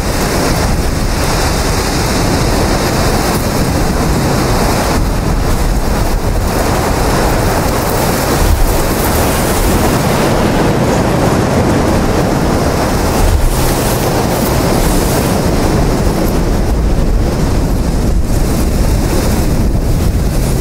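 Strong wind blows steadily outdoors.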